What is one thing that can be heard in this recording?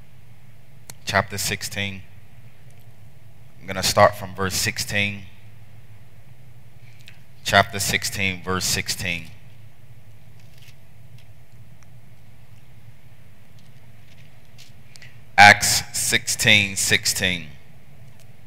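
A man preaches through a headset microphone in bursts, with pauses between phrases.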